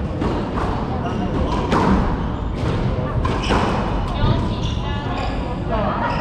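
Squash shoes squeak on a wooden floor.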